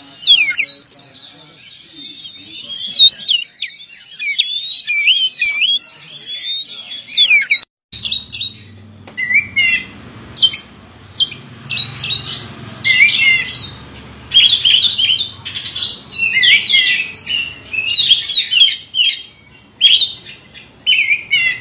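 A songbird sings loud, varied whistling trills and chirps.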